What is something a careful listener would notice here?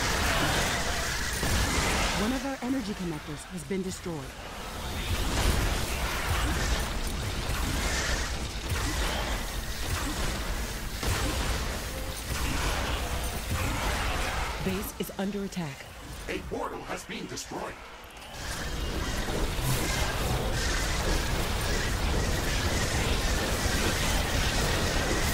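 Game weapons fire and explosions crackle in a busy battle.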